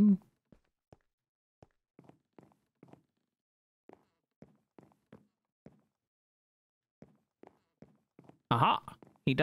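Footsteps tap softly on a wooden floor.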